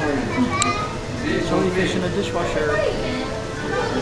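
Men and women chatter nearby in an echoing room.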